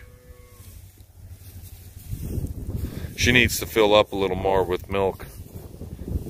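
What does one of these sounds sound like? Cattle shuffle and munch on dry hay.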